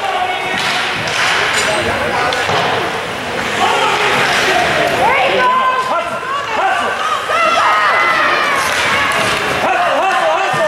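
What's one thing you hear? Skates scrape and glide on ice.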